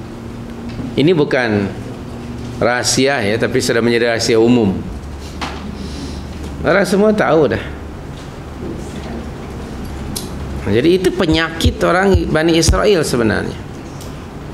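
A middle-aged man speaks calmly and with animation into a microphone, in short bursts with pauses.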